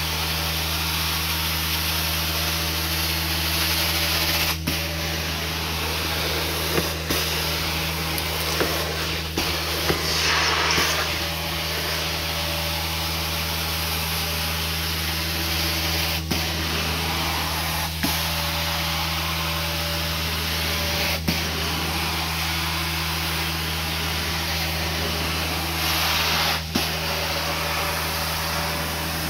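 A carpet extractor's motor hums loudly and steadily.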